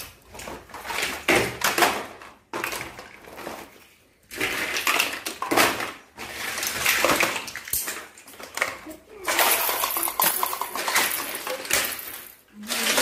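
Plastic toys rattle and clatter in a basket.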